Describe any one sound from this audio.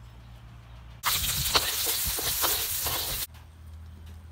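Food sizzles and crackles in a hot pan.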